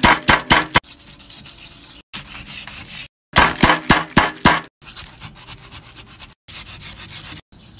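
A knife scrapes and crumbles a dry, chalky block.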